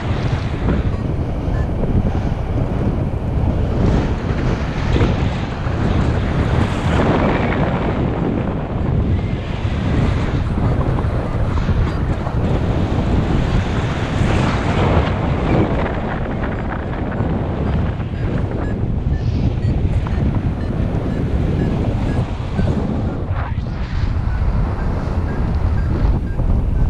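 Strong wind rushes and buffets loudly against a microphone.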